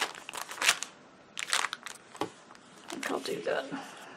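A paper punch clunks as it is pressed.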